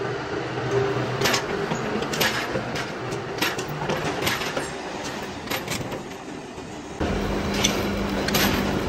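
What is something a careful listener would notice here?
A metal-cutting machine grinds steadily against a steel shaft.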